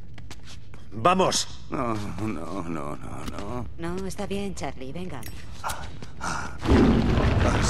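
A man speaks in short calm lines, close by.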